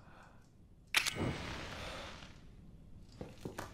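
A flame bursts up with a whoosh and crackles.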